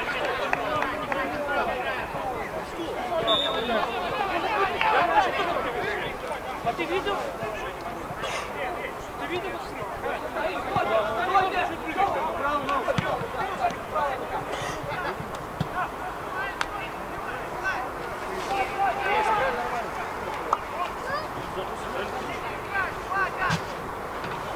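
Young players shout and call to each other across an open outdoor pitch.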